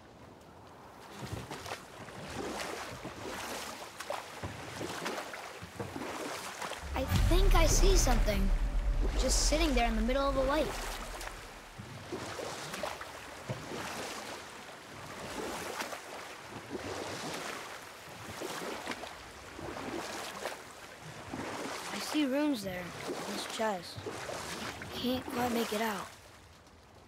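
Oars splash in water with steady strokes.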